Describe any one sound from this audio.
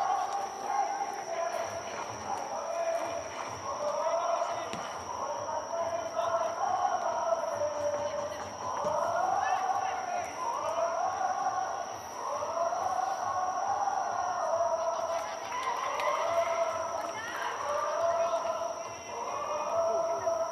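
A large stadium crowd chants and sings together throughout.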